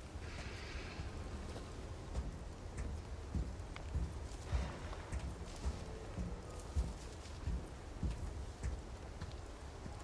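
Boots clank on metal stairs.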